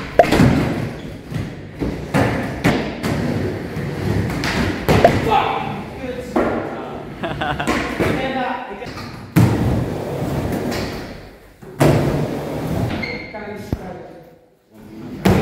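Skateboard wheels roll and rumble on a wooden ramp.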